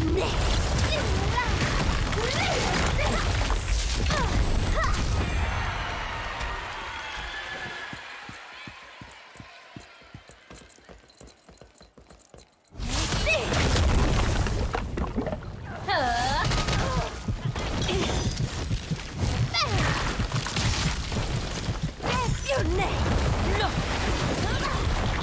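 Magic spells crackle and burst with loud blasts.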